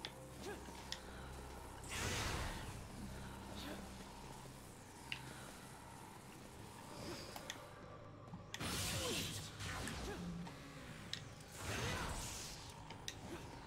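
Sword swishes and hits clash in quick bursts.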